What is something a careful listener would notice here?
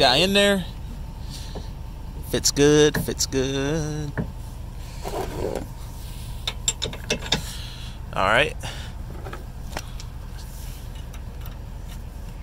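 A metal pin clicks and clanks against a steel hitch.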